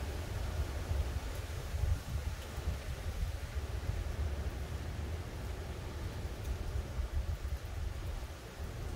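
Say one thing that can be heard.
Wind gusts outdoors, rumbling low and unevenly.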